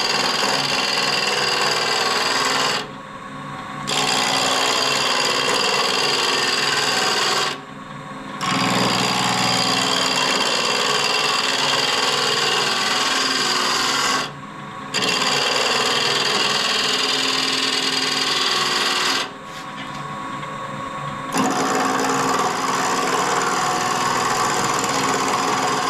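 A chisel scrapes loudly against spinning wood, pausing now and then.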